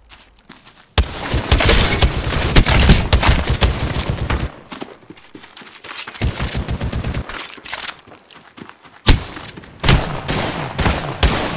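Rapid gunfire bursts out loudly.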